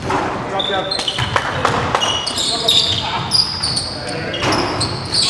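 A basketball thumps on a wooden floor.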